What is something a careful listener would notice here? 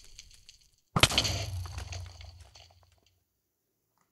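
A heavy thud of a blow lands, followed by a rumbling burst.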